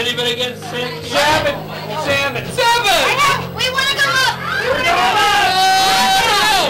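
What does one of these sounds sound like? Young women scream shrilly up close.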